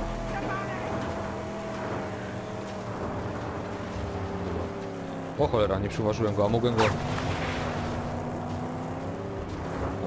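Tyres skid and crunch over sand and gravel.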